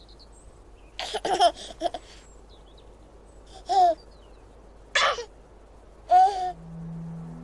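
A baby giggles and babbles.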